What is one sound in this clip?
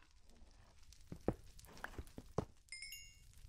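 A pickaxe chips and knocks at stone blocks.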